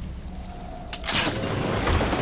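A knife strikes wood with a sharp crack.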